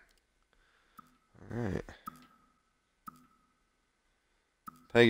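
Soft menu chimes click.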